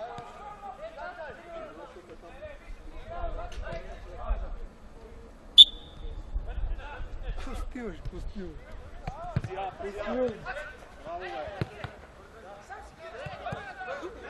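Men shout and call out to each other outdoors.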